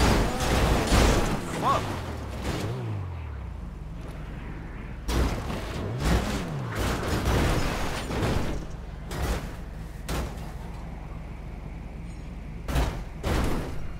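A car crashes and tumbles down a rocky slope with loud thuds and crunches of metal.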